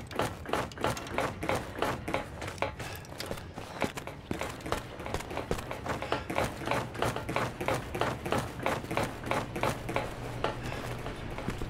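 Footsteps clank steadily on metal ladder rungs.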